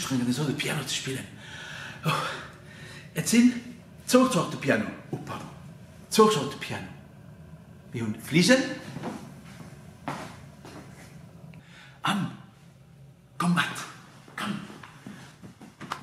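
A middle-aged man talks animatedly close by.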